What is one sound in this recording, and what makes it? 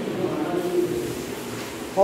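A ceiling fan whirs softly overhead.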